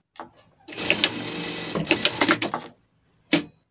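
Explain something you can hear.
A sewing machine stitches briefly.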